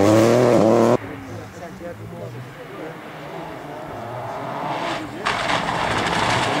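A rally car engine whines in the distance and grows louder as the car approaches.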